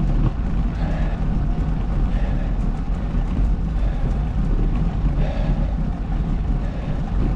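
Wind buffets the microphone outdoors while moving.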